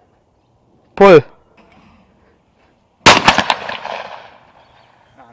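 A shotgun fires loudly outdoors, with a short echo.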